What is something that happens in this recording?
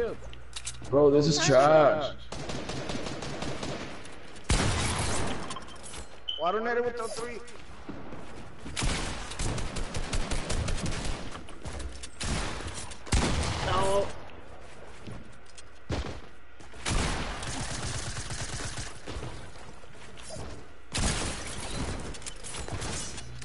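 Video game gunshots fire in quick bursts.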